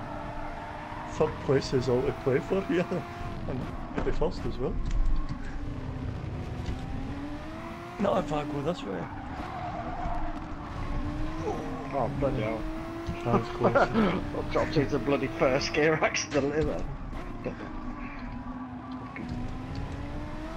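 A racing car engine drones, rising and falling in pitch as it speeds up and slows down.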